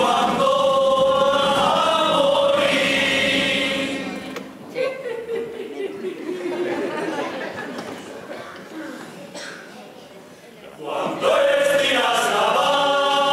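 A chorus of men sings loudly in a large hall.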